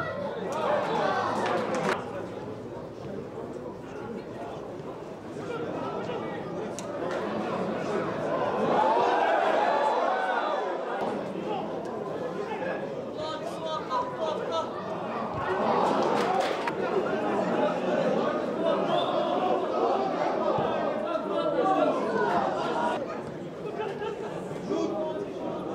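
Football players shout to each other outdoors.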